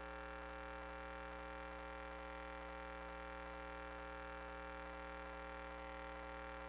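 A small motor whirs steadily.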